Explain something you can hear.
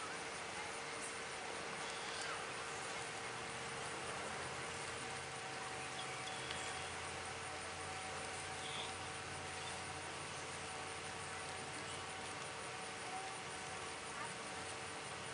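A concert band plays outdoors at a distance.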